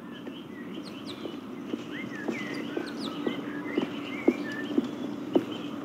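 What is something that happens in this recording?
Footsteps tap steadily on a path outdoors.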